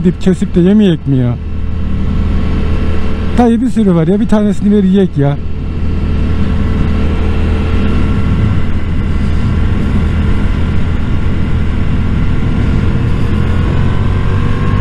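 A motorcycle engine hums steadily, rising slightly in pitch near the end.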